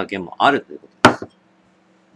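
A glass knocks as it is set down on a table.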